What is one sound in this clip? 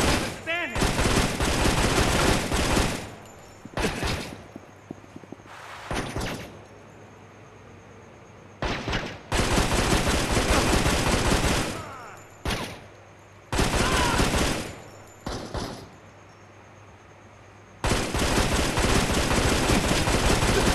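Rapid gunfire rattles in long, loud bursts.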